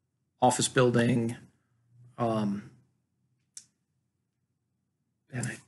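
A man talks calmly and closely.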